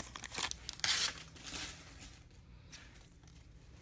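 Hands shuffle through trading cards.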